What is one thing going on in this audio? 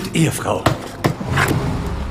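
A hammer knocks sharply against a wall.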